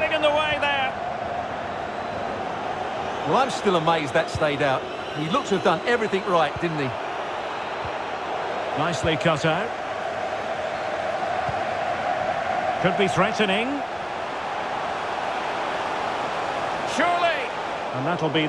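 A stadium crowd murmurs and hums steadily.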